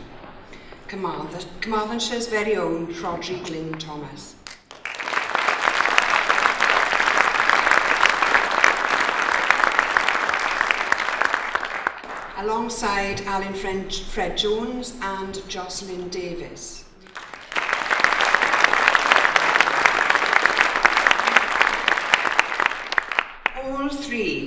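A middle-aged woman speaks with emphasis into a microphone in a large hall.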